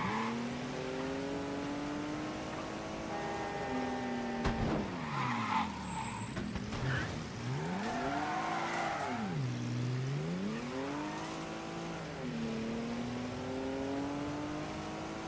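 A car engine revs up and down through gear changes.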